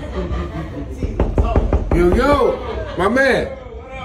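A man knocks on a door with his knuckles.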